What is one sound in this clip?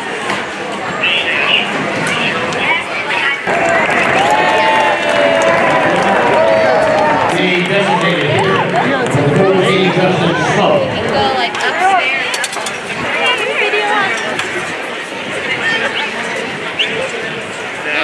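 A crowd of spectators chatters all around outdoors.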